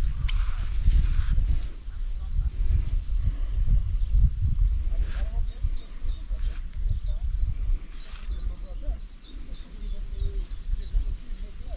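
A fishing reel clicks rapidly as a line is wound in.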